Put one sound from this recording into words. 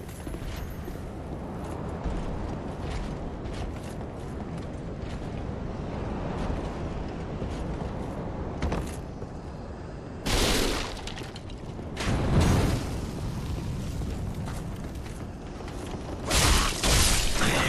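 Armoured footsteps thud and clank on wooden planks and stone.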